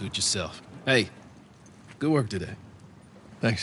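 A man speaks casually, nearby.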